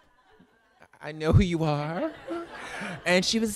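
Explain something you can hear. A woman laughs loudly into a microphone.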